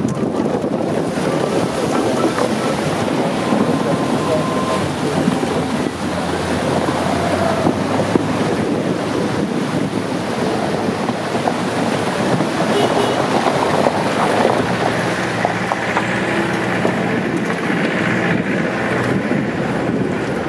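A vehicle's engine rumbles as it drives.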